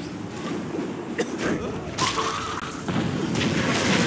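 A man grunts while being grabbed in a scuffle.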